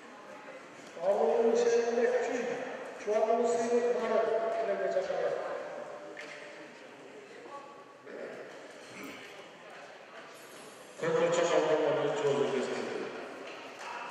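A man shouts loudly in an echoing hall.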